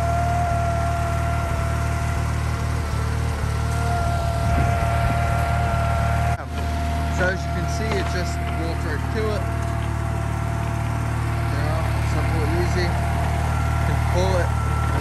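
A small tractor engine runs with a steady low drone.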